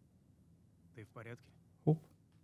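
A young man asks a question calmly.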